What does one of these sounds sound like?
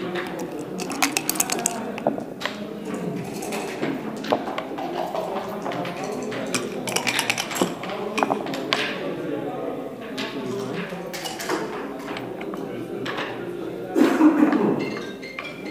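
Game pieces click and clack against a wooden board.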